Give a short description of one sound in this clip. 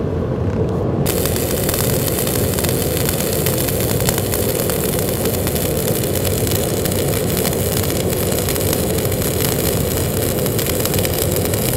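A welding arc crackles and hisses steadily.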